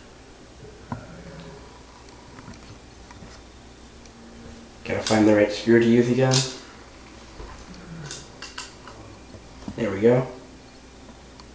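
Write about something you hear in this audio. A small plastic device clicks and rattles as it is handled close by.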